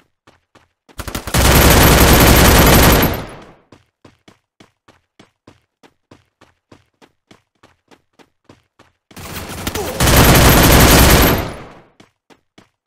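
An automatic gun fires long bursts in a video game.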